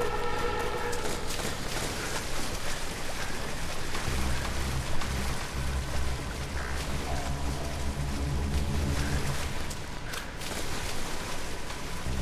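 Water splashes with footsteps wading through a river.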